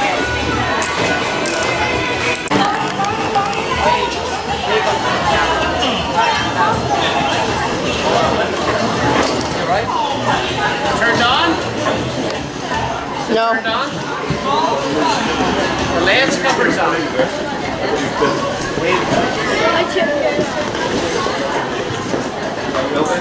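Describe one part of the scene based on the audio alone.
A crowd of adults and children chatters throughout in a large echoing hall.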